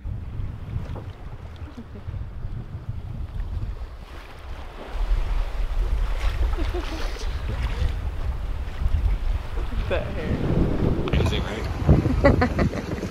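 Waves slosh and splash against a boat.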